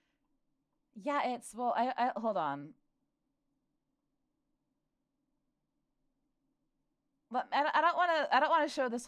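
A young woman speaks animatedly close to a microphone.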